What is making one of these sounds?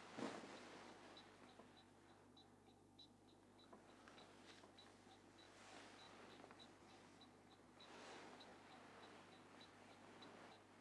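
A man breathes slowly and deeply in his sleep.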